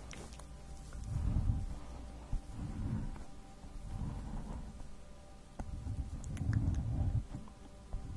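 A pen scratches across paper close to a microphone.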